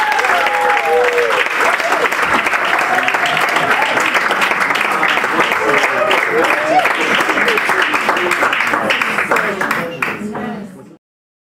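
A small crowd chatters and cheers loudly nearby.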